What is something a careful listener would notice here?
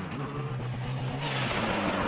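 Tyres spray snow and gravel as a car skids past.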